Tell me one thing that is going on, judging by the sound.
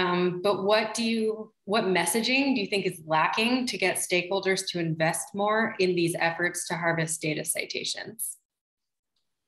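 A woman speaks calmly and closely over an online call.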